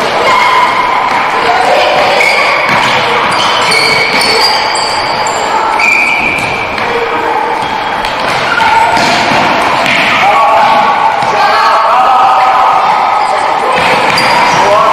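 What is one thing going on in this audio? Boys shout to each other across an echoing hall.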